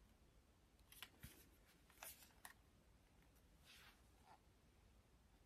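A plastic palette case rustles and clicks in a hand.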